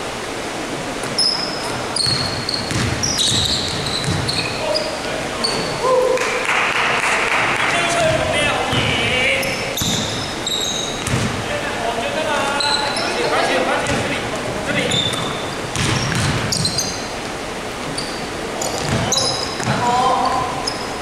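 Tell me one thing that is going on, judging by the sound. A basketball bounces with dull thuds.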